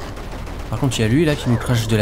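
Small gunshots pop in a retro video game.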